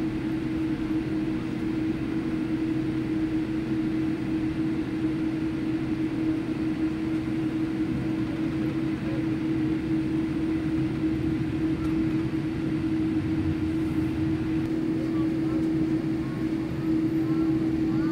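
Tyres rumble low over the taxiway.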